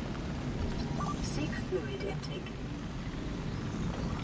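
An electronic scanner hums and beeps.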